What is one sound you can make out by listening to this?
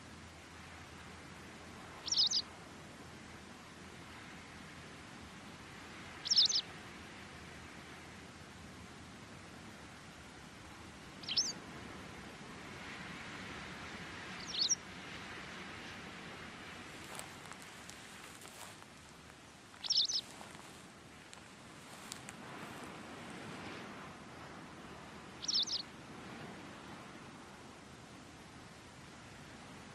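Wind rustles through tall dry grass outdoors.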